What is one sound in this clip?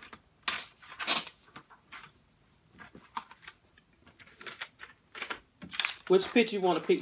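Paper sheets rustle and flap.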